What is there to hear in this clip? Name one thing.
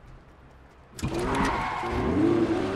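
A car engine revs and hums.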